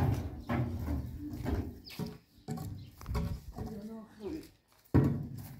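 A heavy barrel rolls and scrapes across concrete.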